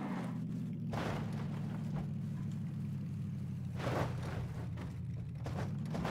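A car engine drones steadily while driving over rough ground.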